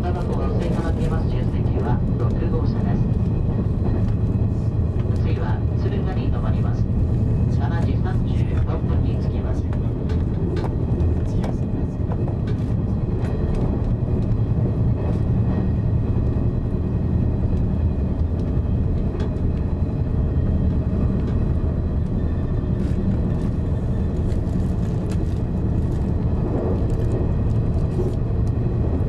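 Train wheels click and clatter over rail joints.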